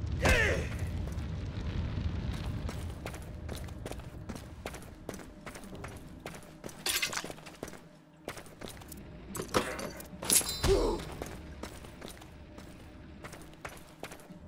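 Footsteps scuff on a hard floor.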